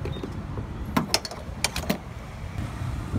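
A fuel nozzle clicks against a filler neck.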